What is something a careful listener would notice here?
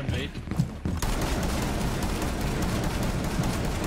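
A loud blast tears through a wall.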